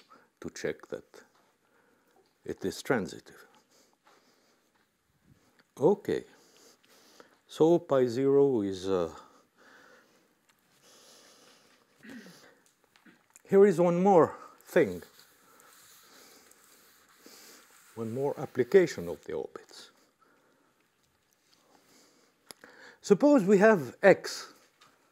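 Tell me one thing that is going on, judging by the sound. An elderly man lectures calmly through a microphone in a large room, pausing between phrases.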